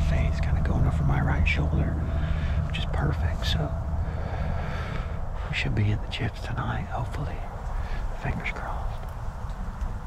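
A man talks quietly and close by in a low voice.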